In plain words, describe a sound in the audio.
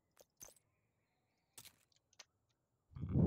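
Soft menu clicks sound several times.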